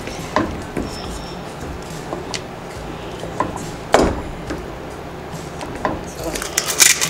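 A wooden spoon stirs and scrapes a thick sauce in a pan.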